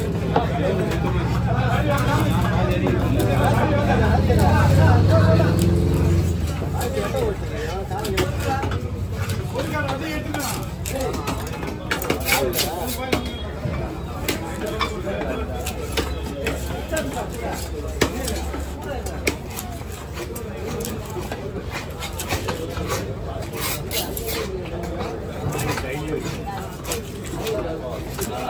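A knife cuts and scrapes through fish on a wooden block.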